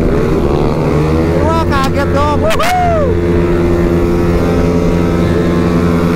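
A motorcycle engine roars steadily at high speed.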